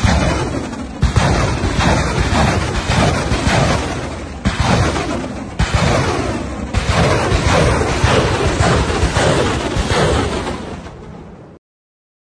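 Sharp explosions bang repeatedly close by.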